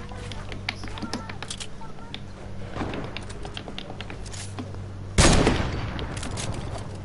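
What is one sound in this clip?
Wooden pieces clack into place in quick succession.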